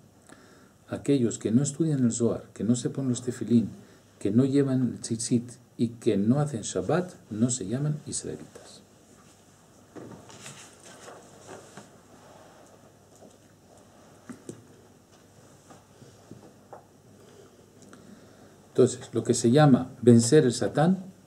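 An older man speaks calmly and clearly close to a microphone, with pauses.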